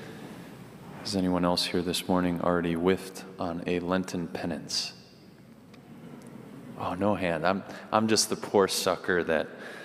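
A young man speaks with animation into a microphone in a large echoing hall.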